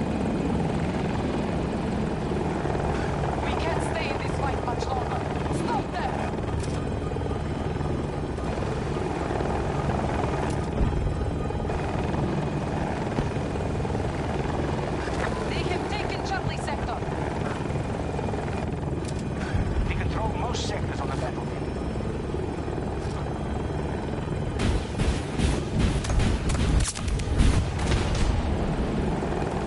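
A helicopter's rotor thrums steadily.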